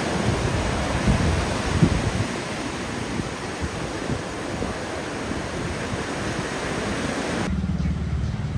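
Waves crash and roar onto the shore.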